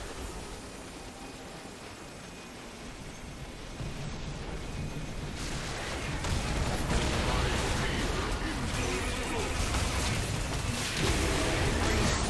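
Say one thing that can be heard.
Magic spells whoosh and crash in a game battle that grows louder.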